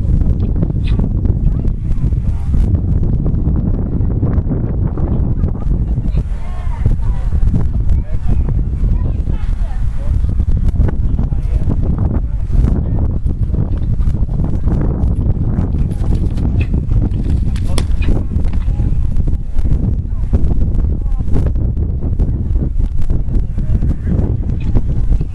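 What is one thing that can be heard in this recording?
Horse hooves thud on grass as a horse canters and jumps.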